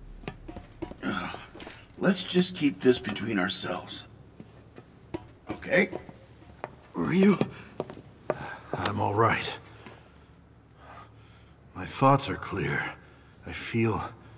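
A man speaks calmly in a low voice, heard close up.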